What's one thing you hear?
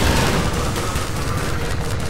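Fire crackles nearby.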